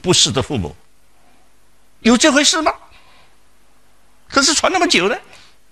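An elderly man speaks with animation into a close microphone, in short bursts.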